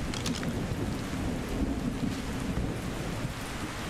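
Leaves and grass rustle as something pushes through dense plants.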